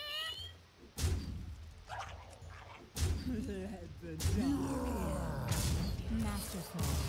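Game sound effects whoosh and crash as creatures attack.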